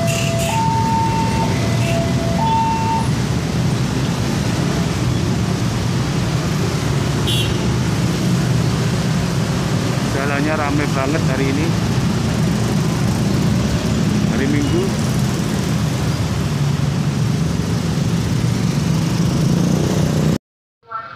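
Many motorcycle engines idle and rumble nearby.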